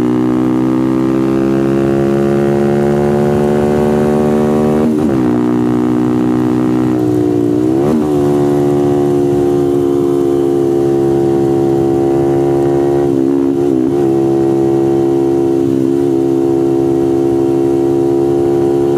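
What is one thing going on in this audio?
A motorcycle engine roars loudly at high speed, its pitch shifting briefly with gear changes.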